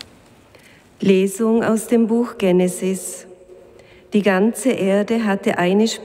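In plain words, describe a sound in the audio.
A woman speaks steadily through a microphone in a large echoing hall.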